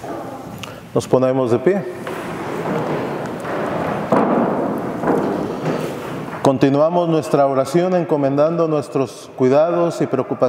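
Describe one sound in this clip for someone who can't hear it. A man chants in a steady voice through a microphone, echoing in a large hall.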